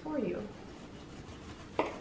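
A knife cuts on a wooden board.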